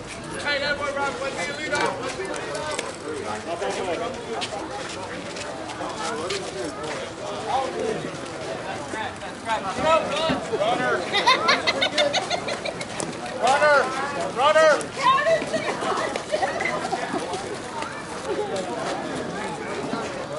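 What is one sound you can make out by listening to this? Several men and women talk and call out across an open field outdoors.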